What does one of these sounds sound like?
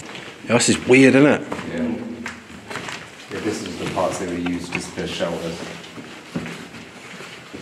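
Footsteps shuffle on a hard floor in an echoing tunnel.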